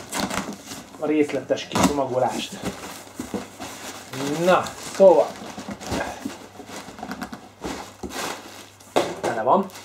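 Cardboard flaps scrape and thump as a box is opened.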